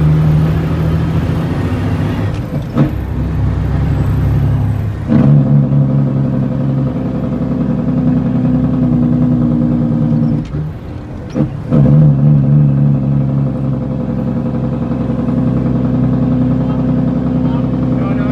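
The bus rattles over the road.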